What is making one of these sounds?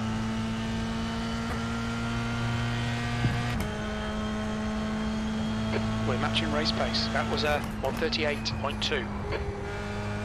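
A racing car engine drones steadily at high revs, shifting pitch once as a gear changes.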